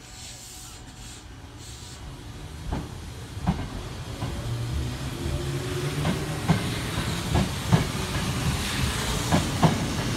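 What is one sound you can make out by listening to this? An electric commuter train pulls away with a rising motor whine.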